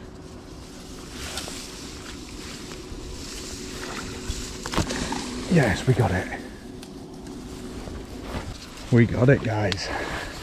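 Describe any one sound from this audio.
Dry reeds rustle and crackle as a fishing rod pushes through them.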